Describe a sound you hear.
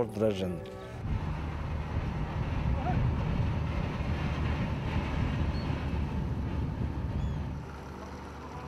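Water splashes and rushes against a moving boat's hull.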